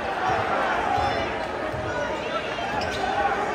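A basketball thumps as it is dribbled on the court.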